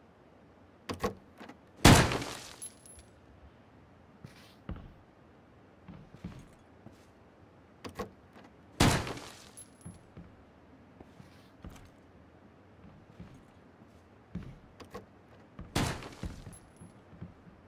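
Gunshots ring out loudly with a short echo.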